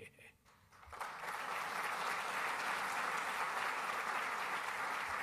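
A large crowd applauds steadily in a large hall.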